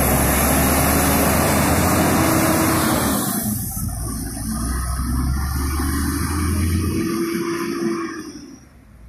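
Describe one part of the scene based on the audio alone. A coach engine rumbles as the coach drives past slowly.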